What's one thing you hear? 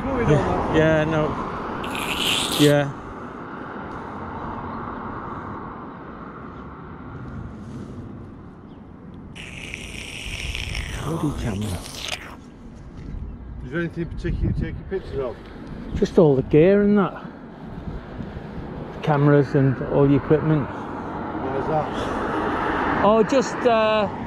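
A man speaks calmly close by, with pauses.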